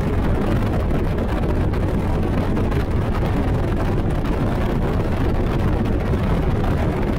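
A boat's outboard engine roars steadily at high speed.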